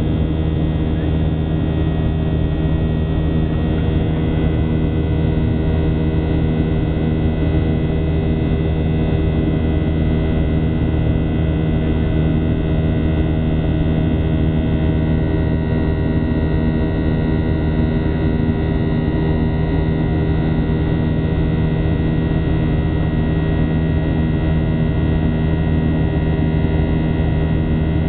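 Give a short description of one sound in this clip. Jet engines roar with a steady, loud drone.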